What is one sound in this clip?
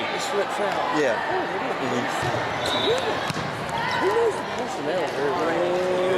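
A volleyball is struck with a dull slap.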